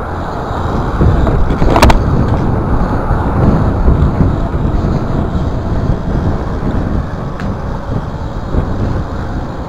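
BMX bike tyres rumble over paving bricks.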